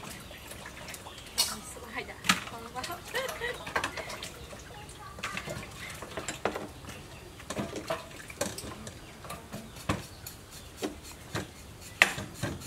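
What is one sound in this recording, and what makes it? Utensils clink and knock against metal bowls.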